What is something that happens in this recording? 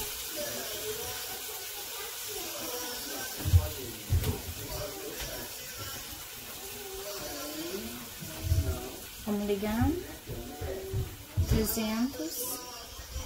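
Chicken sizzles on a hot grill.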